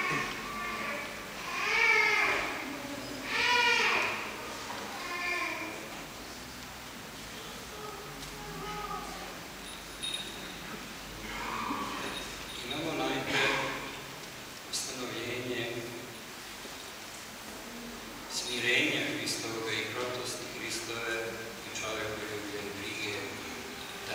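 A man chants in a deep voice in a large echoing hall.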